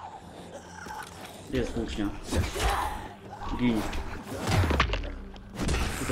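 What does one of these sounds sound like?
A heavy weapon strikes a body with dull thuds.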